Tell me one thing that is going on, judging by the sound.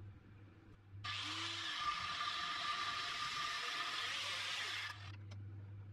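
An angle grinder whirs loudly.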